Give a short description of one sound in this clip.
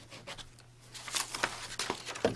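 Papers rustle and shuffle close by.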